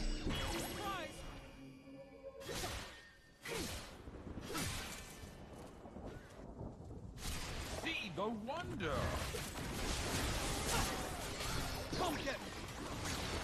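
Video game spell effects whoosh and zap.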